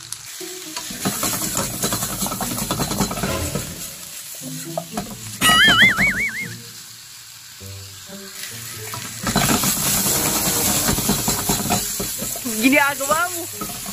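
Chicken sizzles and crackles in a hot pan.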